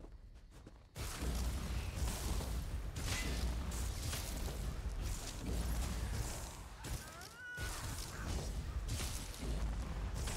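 Magic spells crackle and blast loudly in a game battle.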